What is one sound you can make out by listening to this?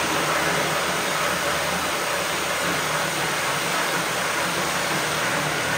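A reciprocating saw buzzes loudly as it cuts through wood.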